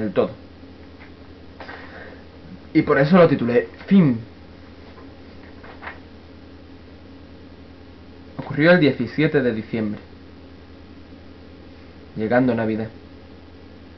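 A young man speaks calmly in short bursts, close to a microphone.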